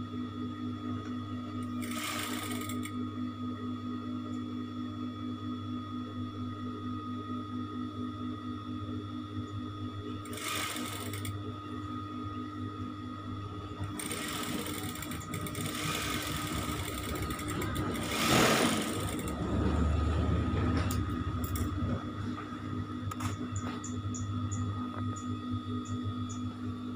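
A sewing machine hums and stitches rapidly.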